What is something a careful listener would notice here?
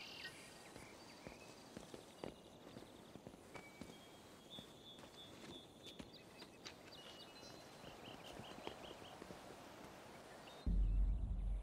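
Footsteps tap softly on a tiled floor.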